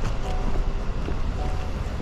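Footsteps tap on wet pavement.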